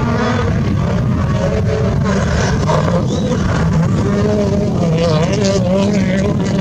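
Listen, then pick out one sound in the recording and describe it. Gravel sprays and crunches under a rally car's tyres.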